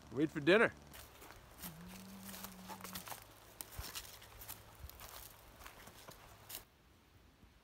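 Footsteps crunch on leaves on a forest path.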